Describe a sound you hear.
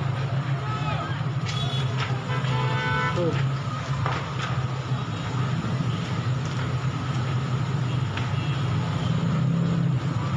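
A large fire crackles and pops in the distance.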